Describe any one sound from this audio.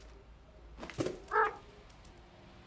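A cat meows.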